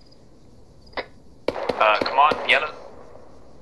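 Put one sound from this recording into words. Rifle shots crack in a quick burst.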